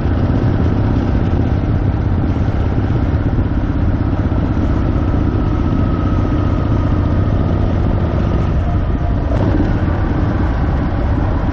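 A motorcycle engine rumbles steadily at cruising speed.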